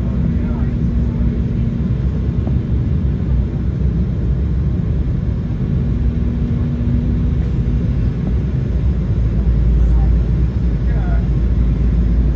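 A jet engine roars steadily with a low rumble, heard from inside an aircraft cabin.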